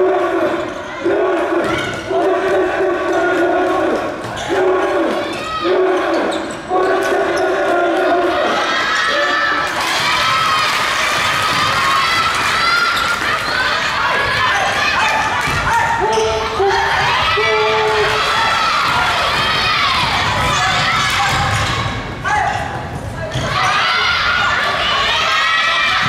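Spectators cheer and shout in a large echoing hall.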